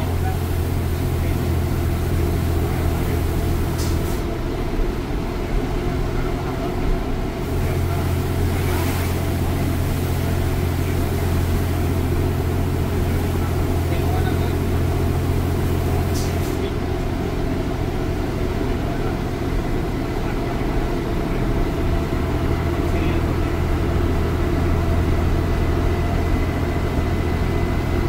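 A bus engine hums and drones steadily from inside the cabin.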